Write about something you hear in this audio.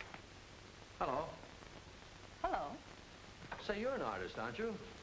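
A man speaks in a raised, lively voice.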